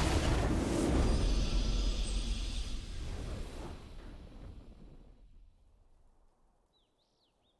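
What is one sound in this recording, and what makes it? A triumphant fanfare swells and then fades away to silence.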